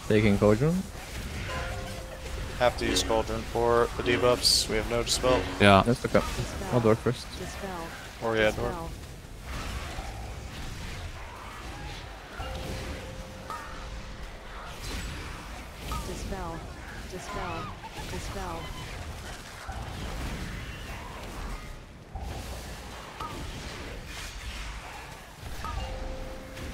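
Fiery spells whoosh and burst in a busy battle.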